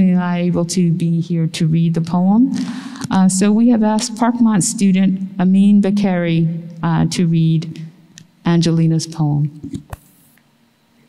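A woman reads out calmly through a microphone in a large echoing hall.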